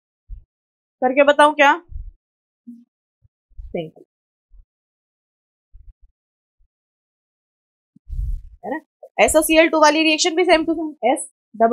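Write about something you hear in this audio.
A woman speaks clearly into a close microphone, explaining with pauses.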